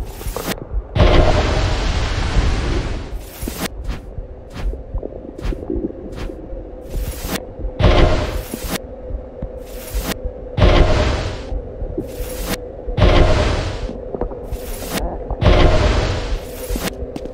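A loud whoosh of rushing air bursts out several times.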